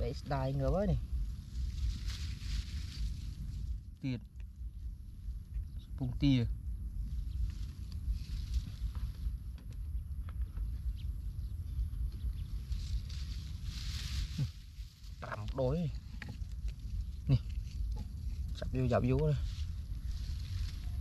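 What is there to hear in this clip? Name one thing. Wind rumbles outdoors.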